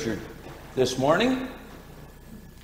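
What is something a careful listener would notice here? An elderly man speaks briefly into a microphone in a room with a slight echo.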